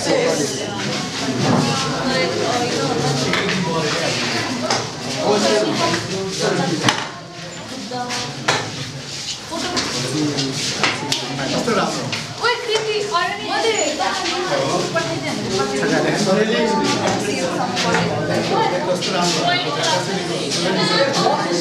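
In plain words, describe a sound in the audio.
Several men talk and chatter close by.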